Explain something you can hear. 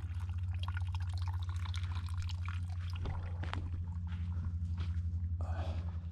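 Footsteps crunch softly on dry forest ground.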